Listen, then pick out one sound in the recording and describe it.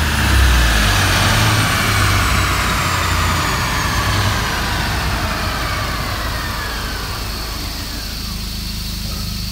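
A turbo whines and falls in pitch as the engine slows.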